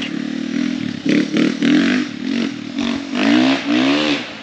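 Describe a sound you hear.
A dirt bike engine revs up and down in short bursts.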